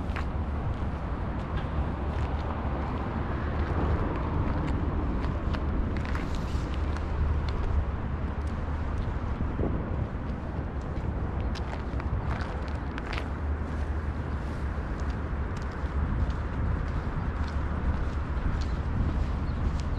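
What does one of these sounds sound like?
Water laps gently against a stone embankment.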